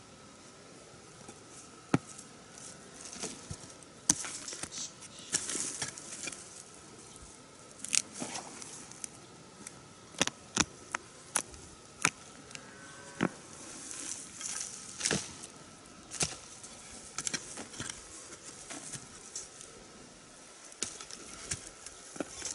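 A digging tool chops into loose soil in sharp thuds.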